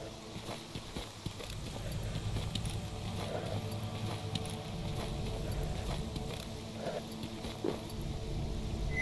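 Footsteps tread through grass and gravel outdoors.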